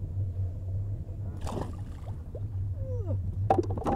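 A fish splashes into water.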